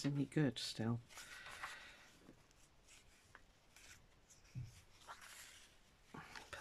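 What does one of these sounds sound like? Paper rustles and crinkles as it is folded.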